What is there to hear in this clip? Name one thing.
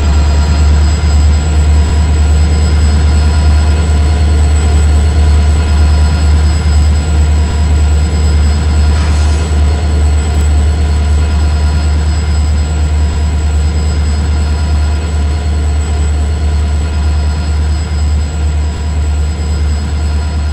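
Freight wagons rumble and clack slowly along the rails.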